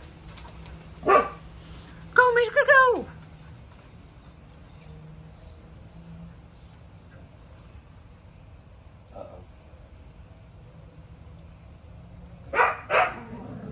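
A dog yelps and howls nearby in short bursts.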